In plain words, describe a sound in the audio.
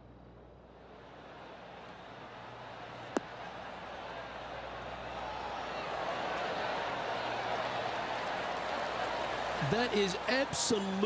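A large crowd cheers and applauds, swelling louder.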